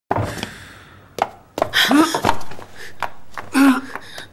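Hard-soled shoes step quickly across a hard floor.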